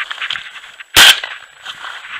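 A shotgun fires a single loud blast close by.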